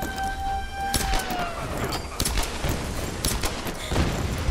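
Pistol shots crack sharply, one after another.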